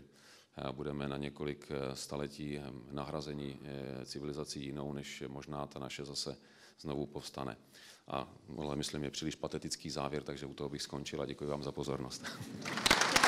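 A middle-aged man speaks calmly through a microphone in a large hall.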